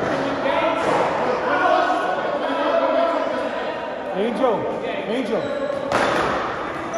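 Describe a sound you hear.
A man talks loudly, his voice echoing in a large hall.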